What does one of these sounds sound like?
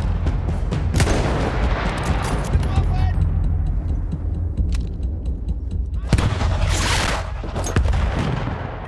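A rifle fires loud shots that echo and rumble away.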